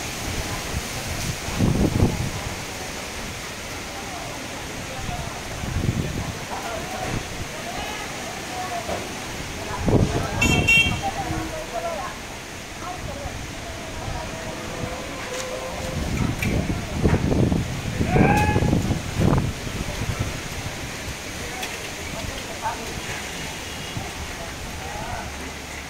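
Strong wind gusts and roars outdoors.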